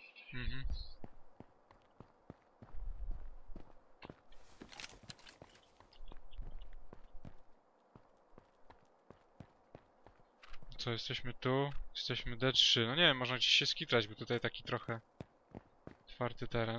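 Footsteps tap steadily on a paved road.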